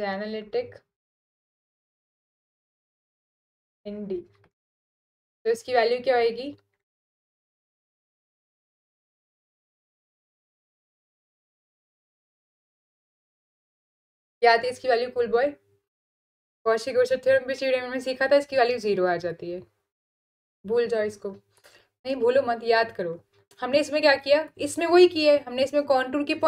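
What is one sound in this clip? A young woman speaks calmly into a close microphone, pausing now and then.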